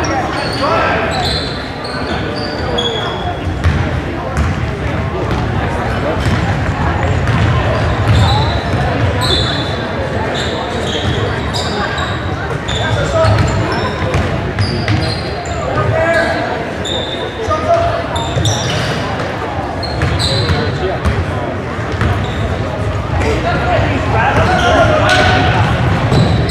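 Sneakers squeak sharply on a hardwood court, echoing in a large hall.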